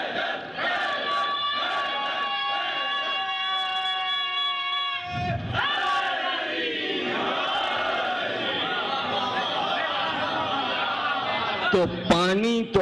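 A crowd of men chants loudly together in a large room.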